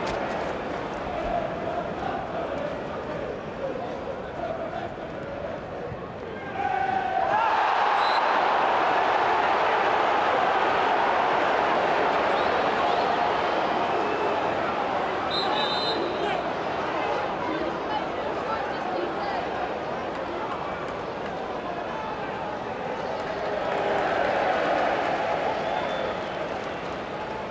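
A large stadium crowd roars and chants loudly outdoors.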